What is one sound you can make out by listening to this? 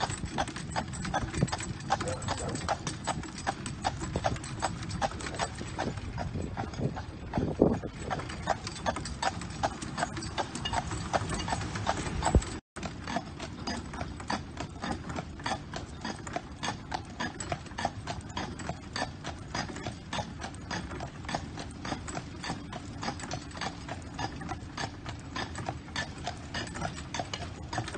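Wheels rumble along the road.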